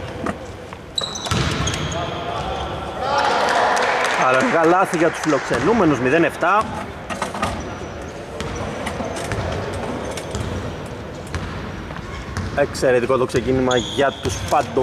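Sneakers squeak sharply on a hardwood floor in an echoing hall.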